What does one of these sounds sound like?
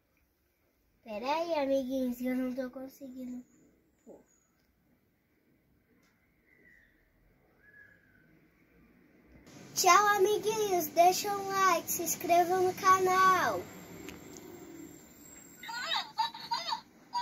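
A young girl talks close by with animation.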